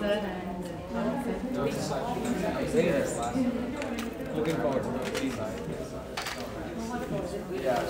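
A young man speaks calmly through a microphone.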